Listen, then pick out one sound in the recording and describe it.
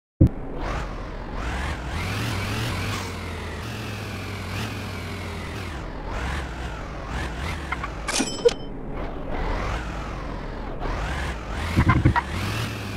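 A car engine hums and revs up and down as it drives.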